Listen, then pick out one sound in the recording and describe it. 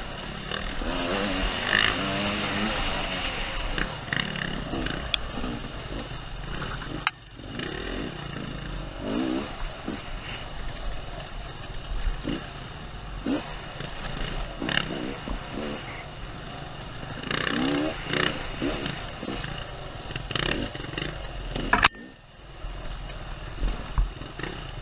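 Dirt bike engines rev and buzz nearby, rising and falling.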